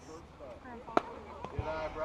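A metal bat strikes a ball with a sharp ping.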